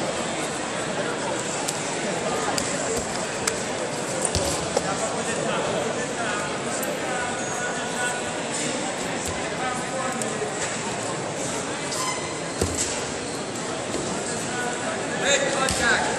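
Wrestling shoes squeak on a rubber mat.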